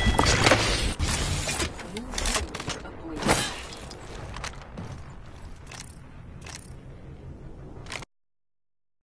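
Game sounds clatter and blast from a match in progress.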